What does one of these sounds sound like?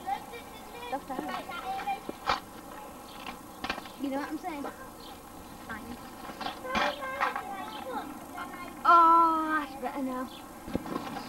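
A young girl talks cheerfully close by.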